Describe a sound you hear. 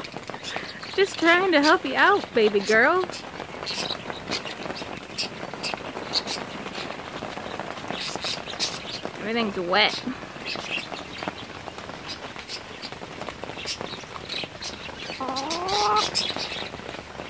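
A woman speaks softly and cheerfully close by.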